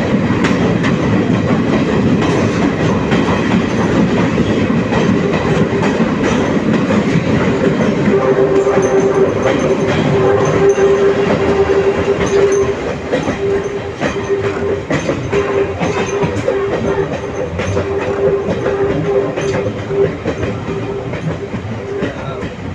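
Passenger train wheels clatter over rail joints.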